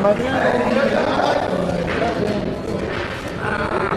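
Billiard balls click against each other and thud off the cushions.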